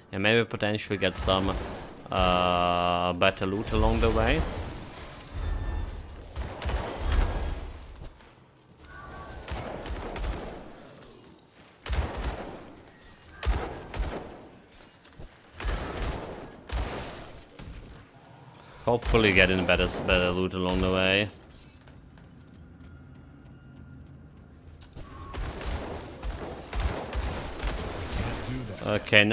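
Magic spells crackle and blast in quick bursts.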